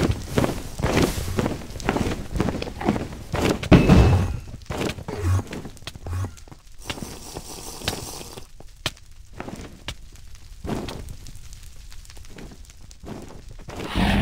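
Fire crackles.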